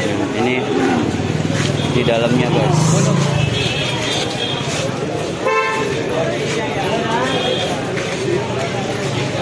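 A crowd of men talk and murmur nearby, outdoors.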